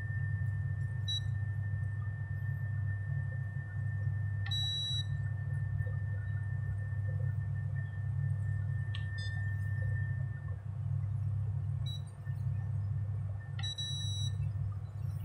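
An appliance beeps as its buttons are pressed.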